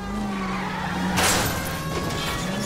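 A car crashes into another car with a loud smash.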